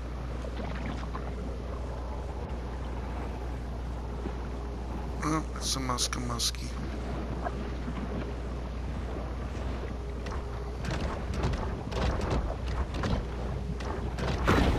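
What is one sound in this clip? A low, muffled underwater rumble drones steadily.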